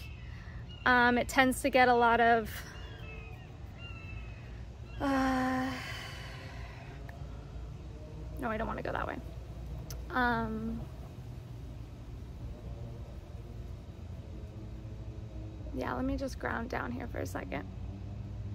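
A young woman speaks softly and calmly close by, in short phrases with pauses.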